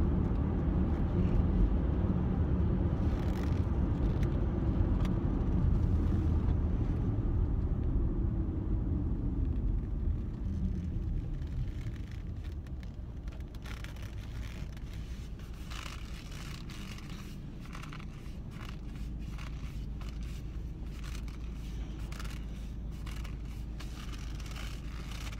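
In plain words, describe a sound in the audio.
A car engine rumbles low and steady inside a moving car.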